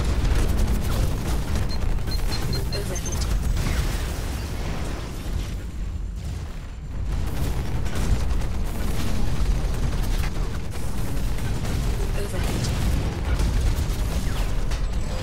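A heavy engine hums and thumps steadily.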